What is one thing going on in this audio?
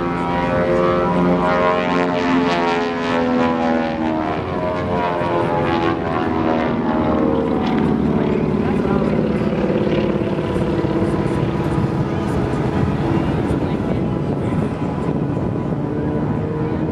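A propeller plane's engine drones loudly overhead, its pitch rising and falling as it loops.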